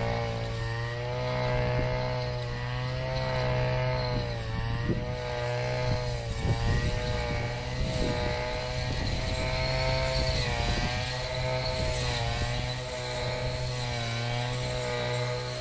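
A string trimmer engine whines steadily nearby, rising and falling slightly.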